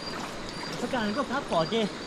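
Water gurgles and splashes nearby.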